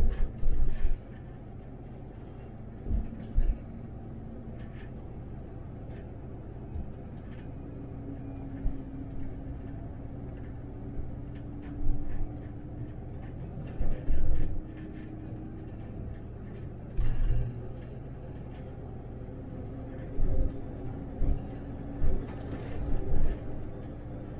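An articulated city bus drives along a road, heard from the driver's seat.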